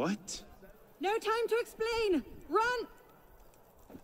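A young man shouts urgently nearby.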